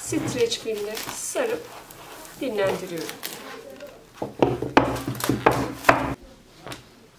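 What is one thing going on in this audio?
Plastic cling film crinkles and rustles as it is pulled and wrapped.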